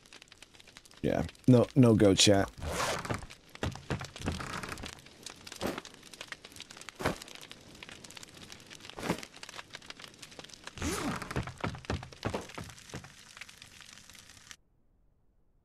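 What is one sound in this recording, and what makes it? A man talks into a close microphone with animation.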